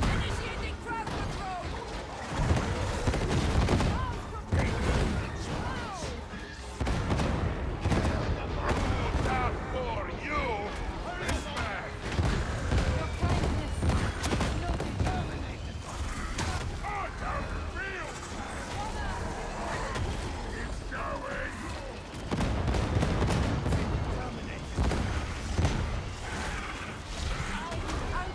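Guns fire rapidly in bursts.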